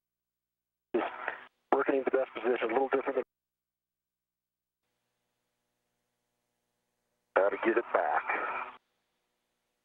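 A man speaks calmly over a crackly radio link.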